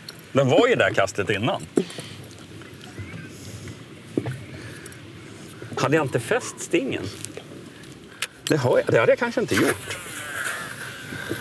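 A fishing reel clicks as a line is wound in.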